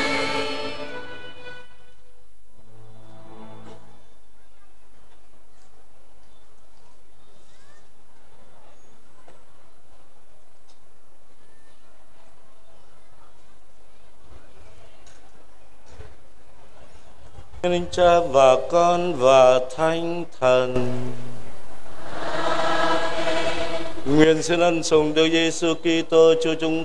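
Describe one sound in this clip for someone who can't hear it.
A man chants slowly through a loudspeaker in a large echoing space.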